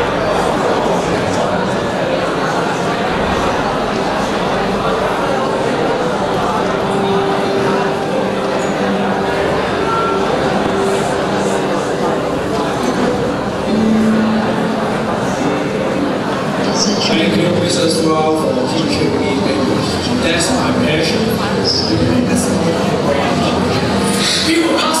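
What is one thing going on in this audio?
An audience murmurs and chatters in a large hall.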